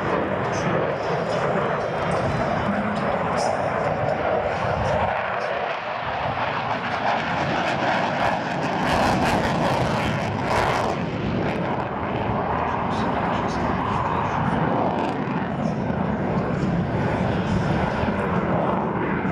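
A jet engine roars loudly overhead, rising and falling as the plane turns.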